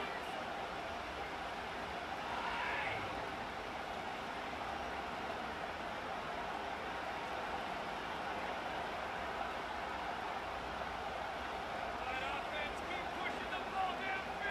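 A large stadium crowd roars steadily in the background.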